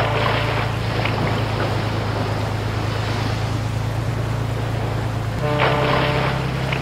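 Waves slosh and ripple on open water.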